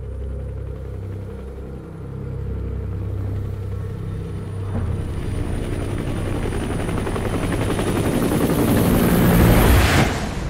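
A helicopter's rotor thumps as it flies close by and grows louder.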